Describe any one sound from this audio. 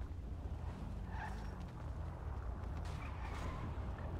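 A car engine revs as a car drives past.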